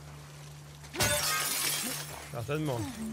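Glass shatters loudly as a window is smashed.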